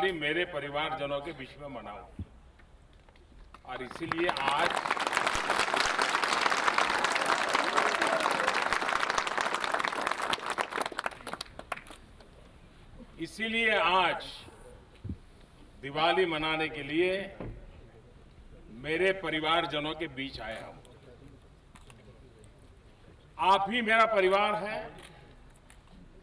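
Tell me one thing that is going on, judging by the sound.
An older man speaks forcefully into a microphone through loudspeakers, in short bursts with pauses.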